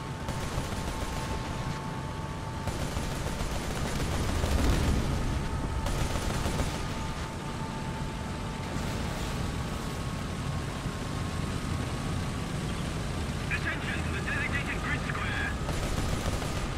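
A tank engine rumbles low and steady as the tank drives along.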